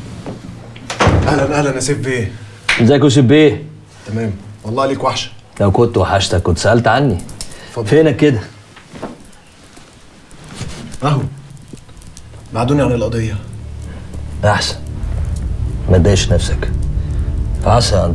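An older man speaks calmly in a low voice, close by.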